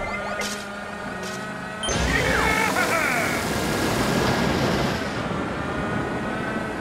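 Cheerful game music plays steadily.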